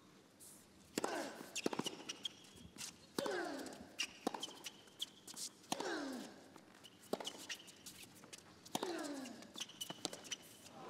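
Tennis rackets strike a ball back and forth.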